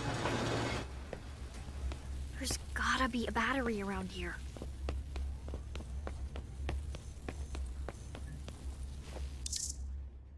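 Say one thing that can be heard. Light footsteps patter across a hard floor.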